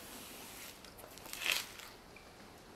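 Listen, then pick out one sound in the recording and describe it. A bag of onions thuds onto a table.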